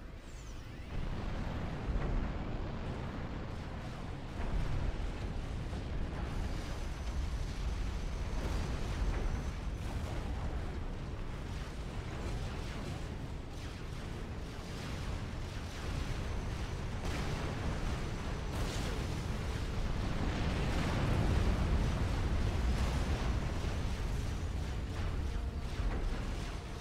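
Gunfire and explosions rumble and crack in a battle.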